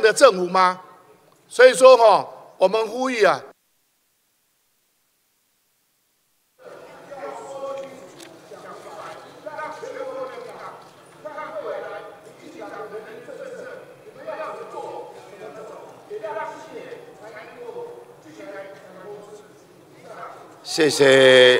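A man shouts with anger into a microphone in a large echoing hall.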